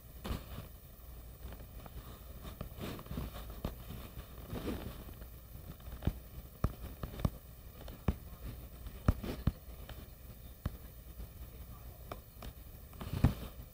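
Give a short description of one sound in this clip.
Fingers tap lightly on a touchscreen.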